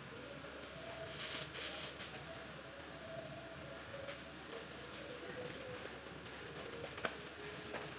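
Fabric rustles as an apron is shaken out.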